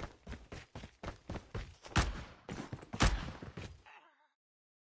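Quick footsteps crunch on dirt.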